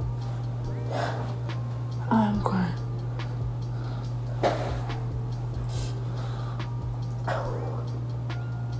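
A young woman makes short, sudden exclamations close by.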